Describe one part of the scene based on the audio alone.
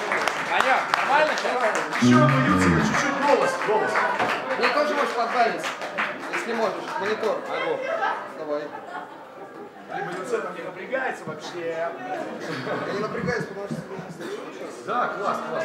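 A man talks into a microphone over loudspeakers in a large echoing room.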